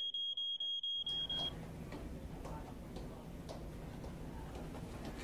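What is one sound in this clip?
Footsteps echo along a hard hallway floor.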